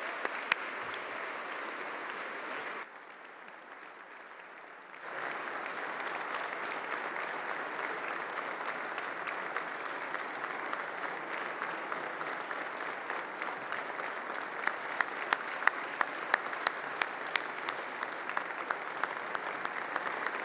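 A large crowd applauds steadily in a big echoing hall.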